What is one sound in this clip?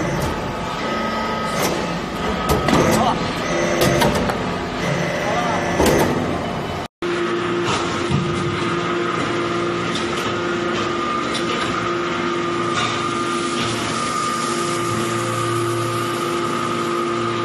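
A hydraulic power unit hums with a steady tone.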